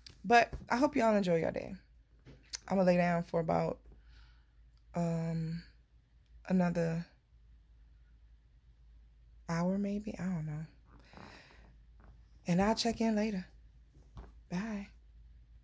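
A woman talks close to a microphone, with animation and pauses.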